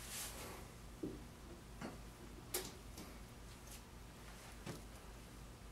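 A metal stand knocks and clinks lightly a few times.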